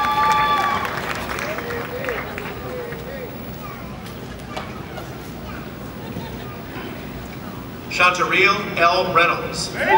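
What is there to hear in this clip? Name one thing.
A man speaks in a large echoing hall.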